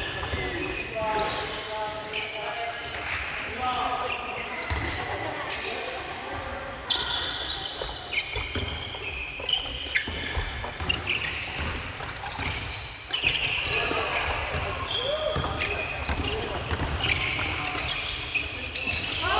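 Young people call out to one another in a large echoing hall.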